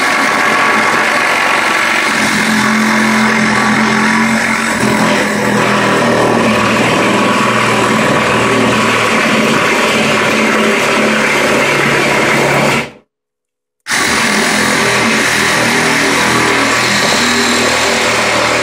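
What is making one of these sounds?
A cordless drill whirs loudly and steadily as it drives into wood, stopping briefly before starting again.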